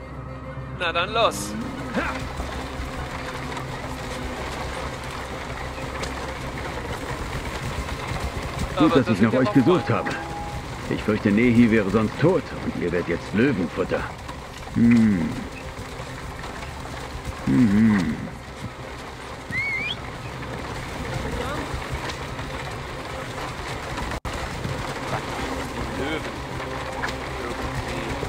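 Wooden cart wheels roll and creak.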